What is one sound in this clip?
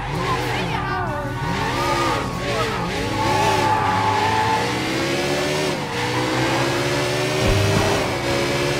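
A motorcycle engine revs up and down as it rides along.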